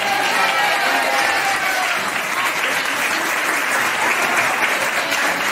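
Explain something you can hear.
A man sings flamenco into a microphone.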